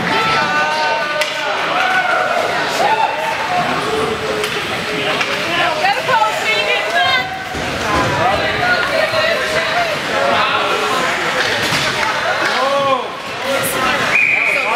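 Ice skates scrape and carve across ice.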